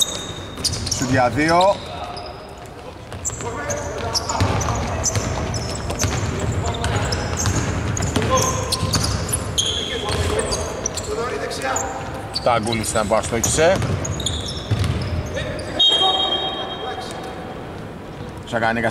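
Basketball shoes squeak on a hardwood court in a large echoing arena.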